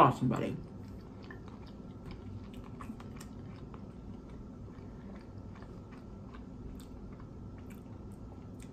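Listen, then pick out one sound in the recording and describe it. A woman chews food close to a microphone, with soft wet mouth clicks.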